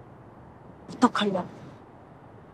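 A young woman asks a short question.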